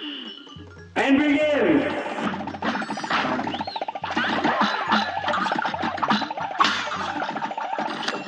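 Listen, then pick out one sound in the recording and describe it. Cartoon hits spark with sharp bright zaps.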